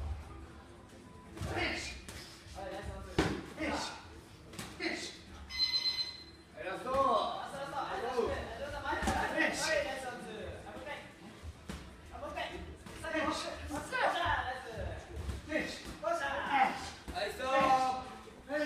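Shoes scuff and squeak on a canvas floor.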